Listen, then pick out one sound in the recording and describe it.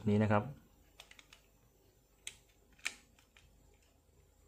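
Small plastic and metal parts click and tap as they are handled.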